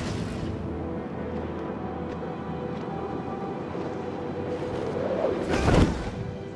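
Wind rushes steadily.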